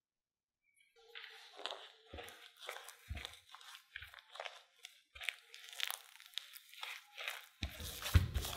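A spatula scrapes and stirs flour in a glass bowl.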